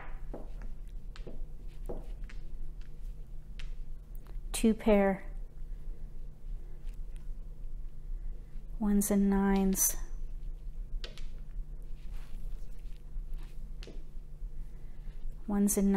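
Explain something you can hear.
Plastic game tiles click and clack as they are set down and slid into place.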